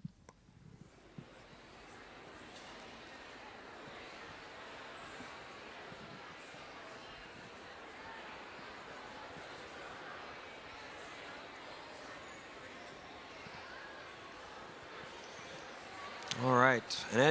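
A crowd murmurs and shuffles quietly.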